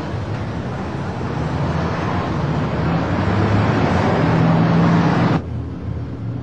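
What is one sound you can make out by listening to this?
A vehicle engine rumbles as it drives through city traffic.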